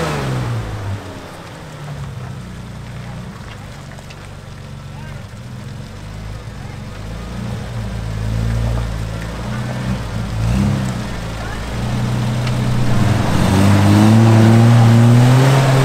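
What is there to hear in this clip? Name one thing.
An engine idles and rumbles nearby.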